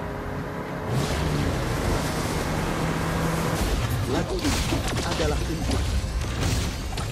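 Magic blasts crackle and bang in a fight.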